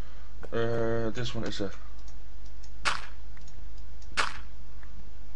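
A shovel crunches into dirt in short bursts.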